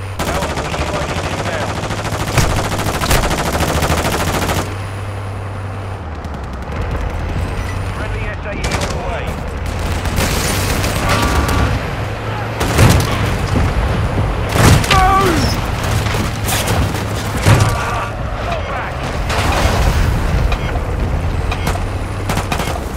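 An armoured vehicle's engine rumbles steadily as it drives.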